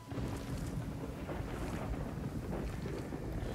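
Footsteps crunch on loose rock.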